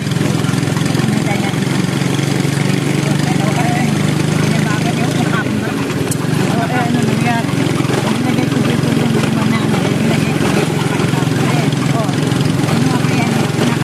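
A vehicle engine hums steadily while driving along.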